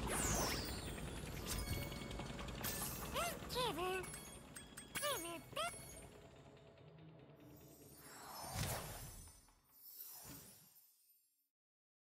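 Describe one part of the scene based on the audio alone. Upbeat video game music plays.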